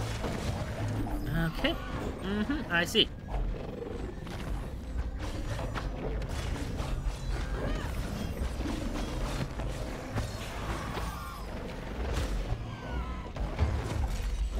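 Sword slashes and hits clash rapidly in a game.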